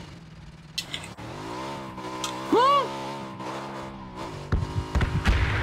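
A motorcycle engine revs and roars.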